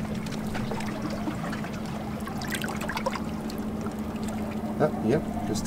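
Seawater surges and splashes between rocks.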